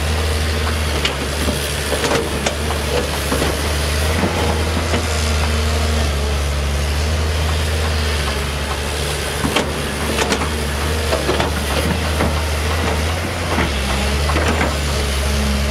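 Rocks and dirt clatter and scrape against an excavator bucket.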